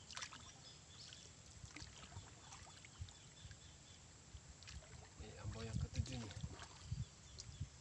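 A wooden paddle splashes in the water.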